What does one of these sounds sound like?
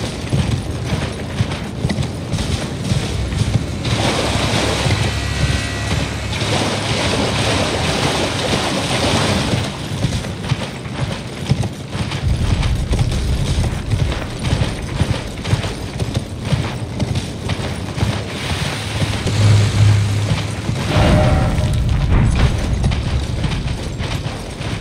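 A horse gallops with heavy, rapid hoofbeats.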